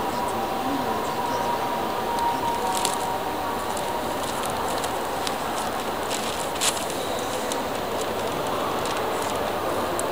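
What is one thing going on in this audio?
Newspaper pages rustle and crinkle as they are turned and folded.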